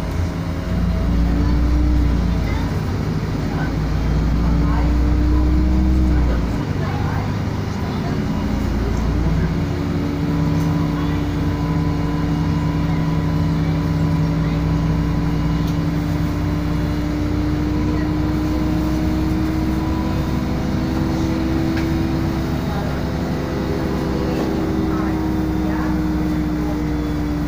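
A bus engine hums and whines steadily while driving.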